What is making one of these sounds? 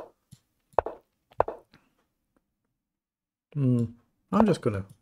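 A middle-aged man speaks calmly and closely into a microphone.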